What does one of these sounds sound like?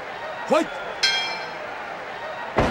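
A ring bell clangs.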